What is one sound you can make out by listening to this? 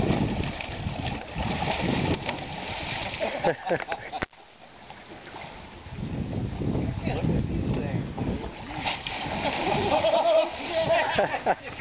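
Water splashes loudly as a big fish thrashes at the surface.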